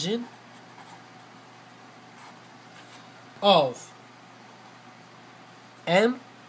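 A marker squeaks softly as it writes on paper.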